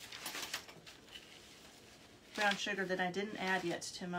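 A plastic bag rustles.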